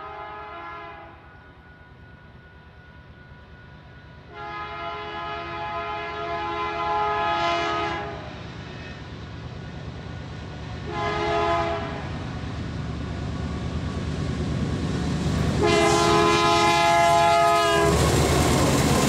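A locomotive horn blares in long and short blasts, drawing closer.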